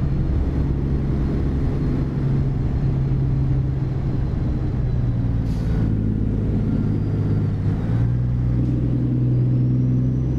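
A truck engine hums steadily with a deep drone.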